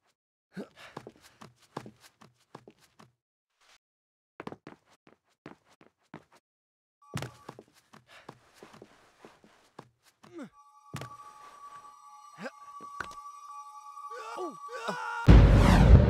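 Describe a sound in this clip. Light footsteps and thuds land on stone.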